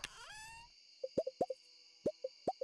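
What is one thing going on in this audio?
Soft menu clicks and pops sound.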